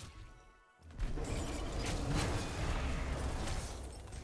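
Magical blasts and clashing combat sounds ring out in a fast fantasy battle.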